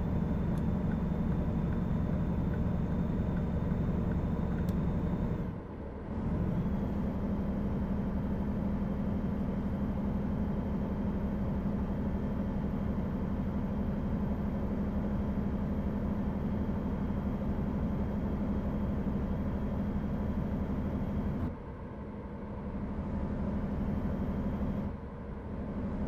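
A truck engine drones steadily while driving at speed.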